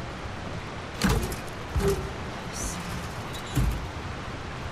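A heavy metal safe door clunks open.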